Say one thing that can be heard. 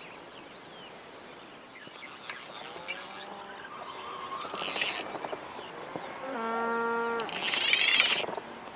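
Water laps gently against a small boat.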